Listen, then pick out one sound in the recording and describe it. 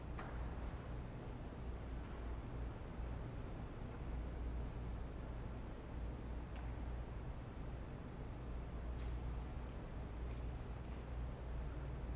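A pipe organ plays deep, sustained notes in a large echoing hall.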